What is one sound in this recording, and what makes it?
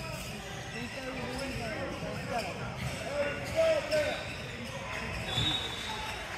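Young men and boys chatter and call out in a large echoing gym.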